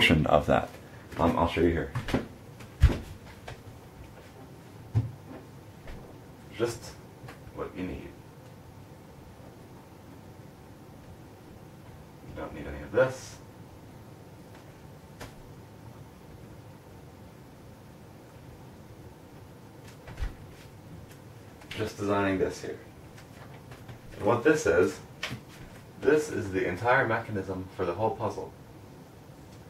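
A young man speaks calmly in short bursts, close by.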